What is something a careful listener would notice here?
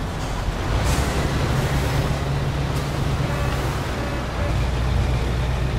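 Tyres hiss over a snowy road.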